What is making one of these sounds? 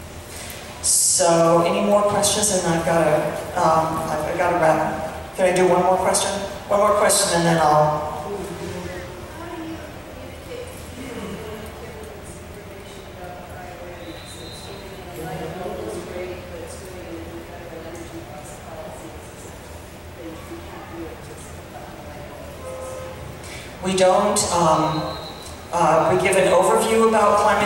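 A woman speaks into a microphone over loudspeakers in a large echoing hall.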